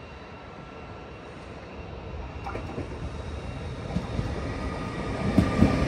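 A train approaches and grows louder as it rolls closer.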